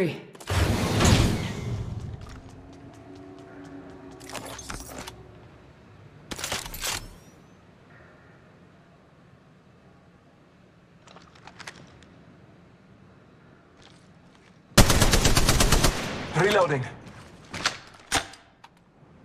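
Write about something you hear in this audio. Gunfire from a video game rattles in quick bursts.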